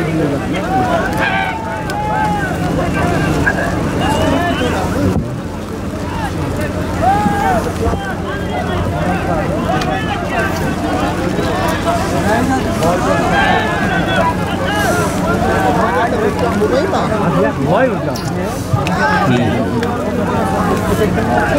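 A crowd of men shouts and calls out outdoors.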